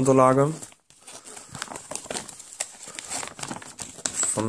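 Paper wrapping crinkles.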